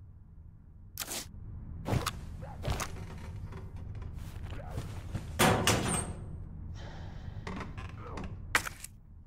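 A metal locker door rattles and clanks.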